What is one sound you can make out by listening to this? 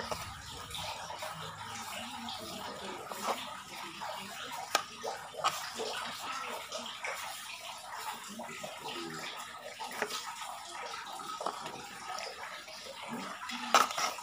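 A trowel scrapes and scoops through loose soil in a pot.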